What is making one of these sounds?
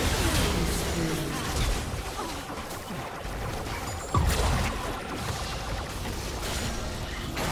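Game spells and attacks crackle and boom in a fast fight.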